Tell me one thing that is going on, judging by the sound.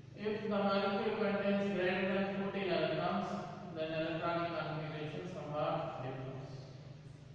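A man speaks calmly and clearly, as if lecturing.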